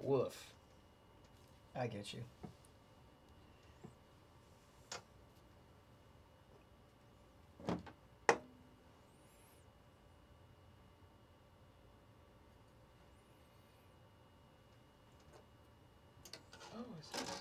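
Cards and packaging rustle and tap on a table.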